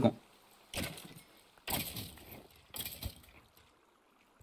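Sword blows land with sharp thuds.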